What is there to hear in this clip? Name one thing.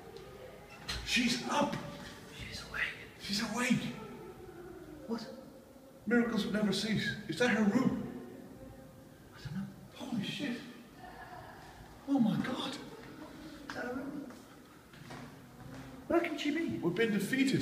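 A man laughs and talks loudly close by.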